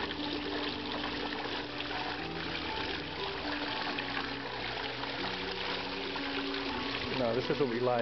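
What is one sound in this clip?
A small waterfall trickles and splashes into a pond.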